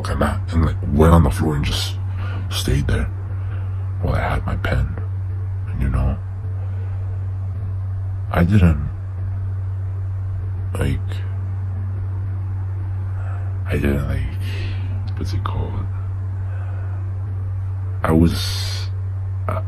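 A man speaks close to a microphone in short bursts.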